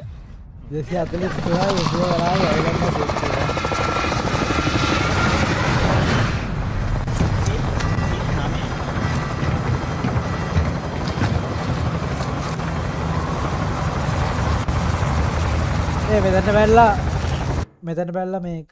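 A helicopter rotor roars loudly.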